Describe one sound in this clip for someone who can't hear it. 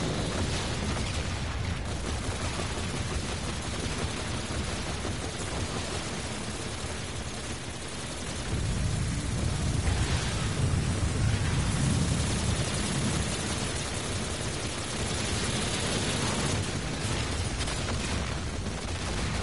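Game guns fire in rapid bursts.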